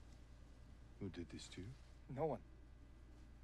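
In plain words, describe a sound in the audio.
A young man speaks in a shaken voice.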